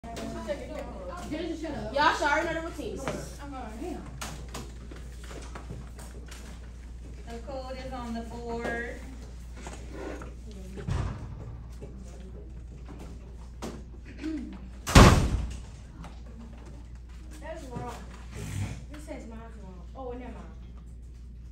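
A woman talks to a group.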